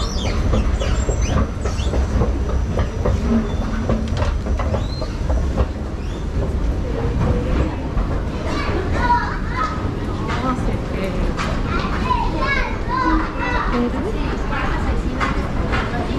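Footsteps tap on a hard floor in an echoing hall.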